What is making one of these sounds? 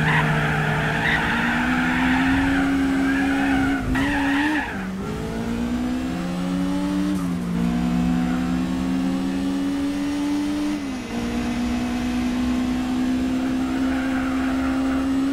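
A racing car engine roars at high revs, climbing in pitch and dropping sharply with each gear change.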